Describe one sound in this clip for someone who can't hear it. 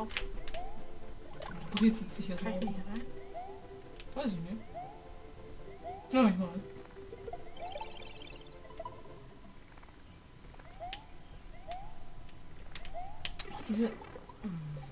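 Cartoon jumping and stomping sound effects chirp and pop.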